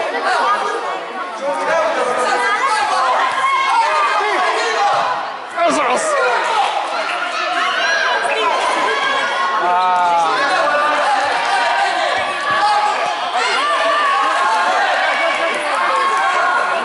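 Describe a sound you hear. Children shout and call out excitedly throughout, echoing in a large covered hall.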